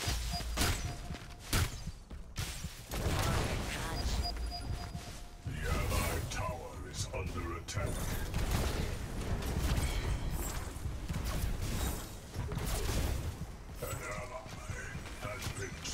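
Heavy metal footsteps clank and thud.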